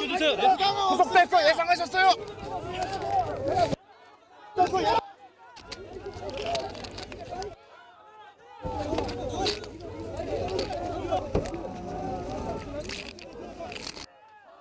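A dense crowd of men shouts and clamours close by.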